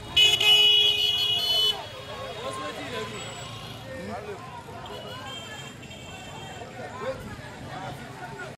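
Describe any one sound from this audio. A crowd of men talk and shout outdoors nearby.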